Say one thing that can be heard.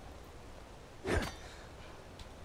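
A wooden chest lid thuds open.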